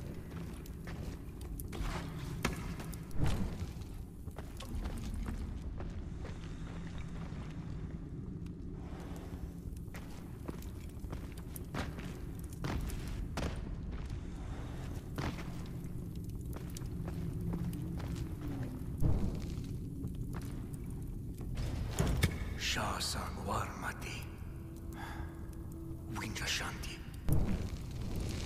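A torch fire crackles and roars steadily.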